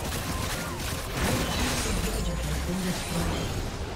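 A building collapses with a heavy crumbling rumble.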